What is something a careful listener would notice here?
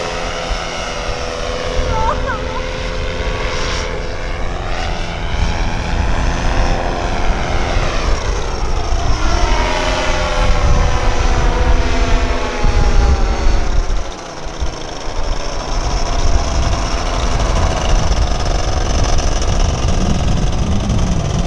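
A paramotor engine drones overhead, its pitch rising and falling as it passes.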